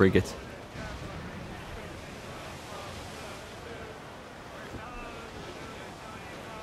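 Ocean waves wash against a ship's hull.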